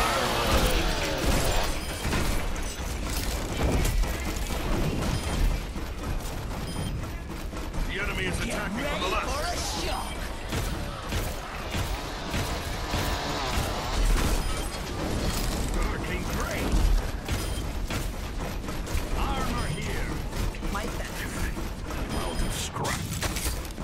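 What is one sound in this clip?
Guns fire rapidly in bursts with heavy booms.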